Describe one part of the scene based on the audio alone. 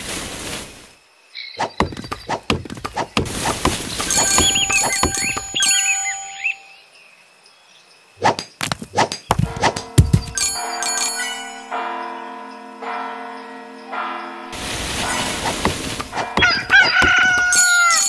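Game sound effects chime and click.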